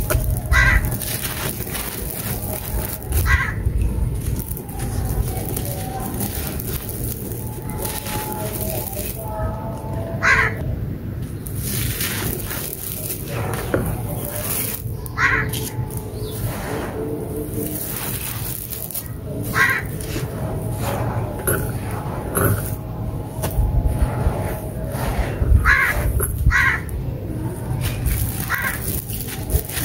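Hands crumble blocks of dry gritty dirt with crunching and crackling.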